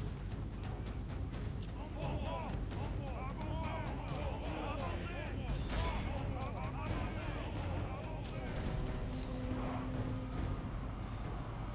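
Armour and weapons clink and rattle among marching soldiers.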